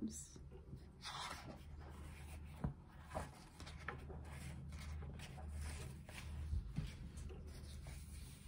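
Book pages rustle and turn.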